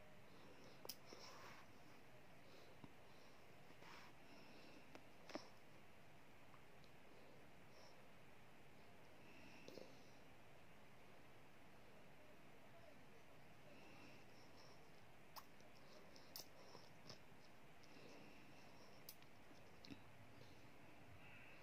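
A toddler sucks and swallows softly from a bottle.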